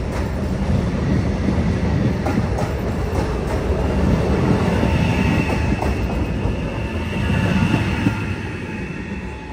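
A passenger train rumbles past close by, wheels clattering on the rails.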